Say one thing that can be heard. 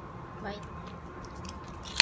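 A dog licks noisily at a hand.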